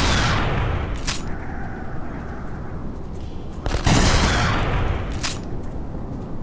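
A rifle bolt clicks as it is worked.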